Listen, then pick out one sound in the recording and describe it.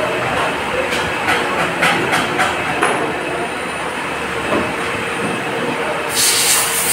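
A tool turret clicks and clanks as it moves.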